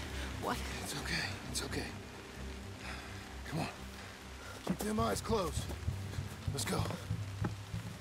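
A man speaks softly and soothingly, close by.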